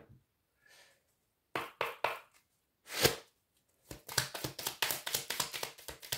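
A deck of cards is shuffled by hand, with quick soft riffling.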